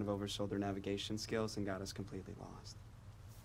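A young man speaks calmly and politely, close by.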